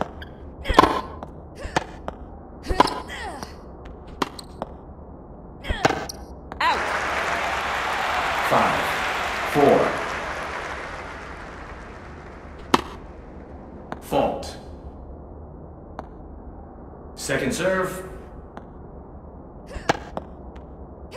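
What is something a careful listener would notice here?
A tennis racket strikes a ball with sharp pops.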